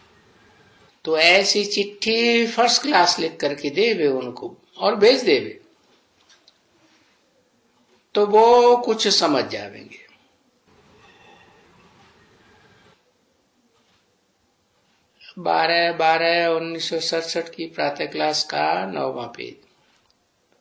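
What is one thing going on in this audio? An elderly man speaks calmly into a close microphone, in short bursts with pauses.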